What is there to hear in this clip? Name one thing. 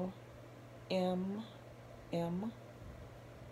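A woman speaks short words close by, in a calm voice.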